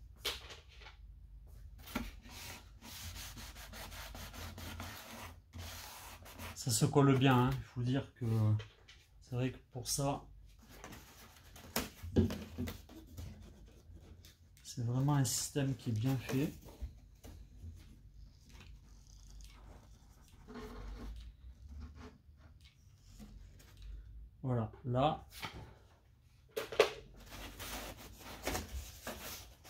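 Foam board creaks and rubs as hands press and bend it.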